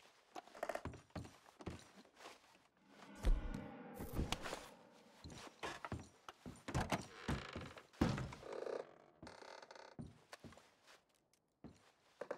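Footsteps thud on wooden floorboards.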